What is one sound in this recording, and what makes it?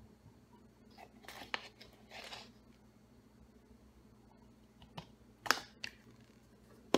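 A plastic scoop taps and scrapes in a tub of powder.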